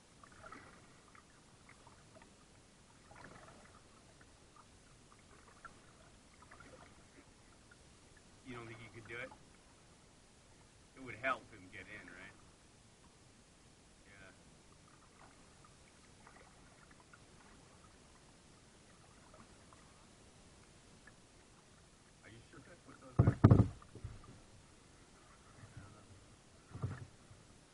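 Water laps gently against a kayak's hull.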